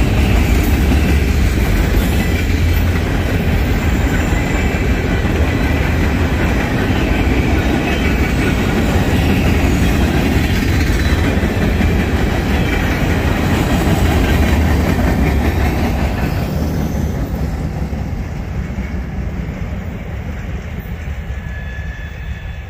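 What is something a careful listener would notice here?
A long freight train rumbles past close by, wheels clattering on the rails, then fades into the distance.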